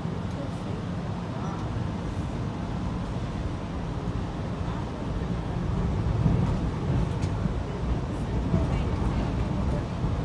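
Cars pass by on the street outside.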